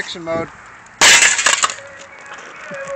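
A metal object clatters onto hard ground.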